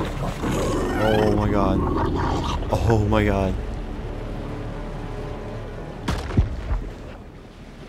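Water rushes and swishes as a creature swims quickly through it.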